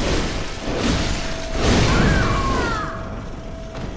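Heavy blows strike and clang in a fight.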